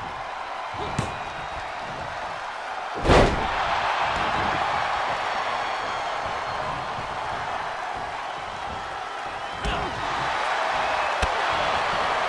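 Blows land with sharp smacks.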